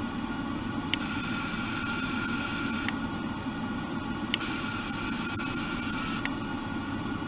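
A small electric device buzzes with a high, steady hiss in short bursts.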